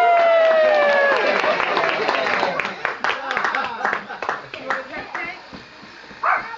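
A group of adults and children sing and cheer loudly nearby.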